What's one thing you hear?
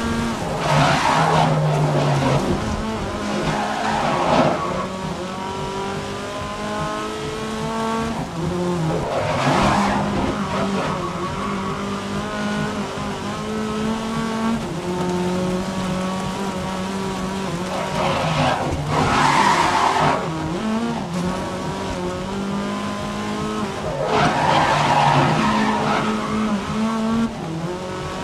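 Rain spatters on a windscreen.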